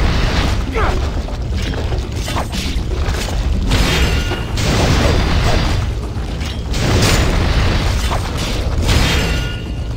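Fire roars and crackles with a deep rumble.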